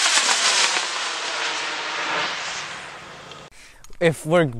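A rocket roars in the distance, its rumble slowly fading.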